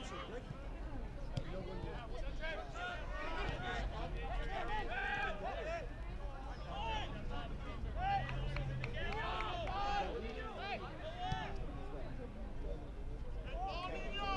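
A ball thumps as players kick it on an open field.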